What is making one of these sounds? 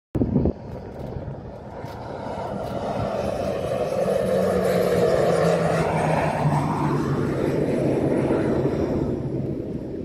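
A propeller plane roars past low overhead, growing louder and then dropping in pitch as it passes.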